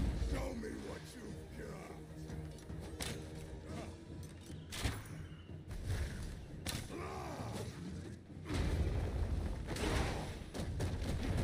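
Spell blasts and combat effects crackle and boom.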